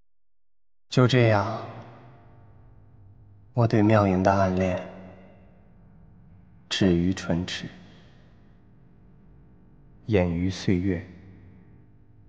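A young man speaks in a halting, tearful voice, close by.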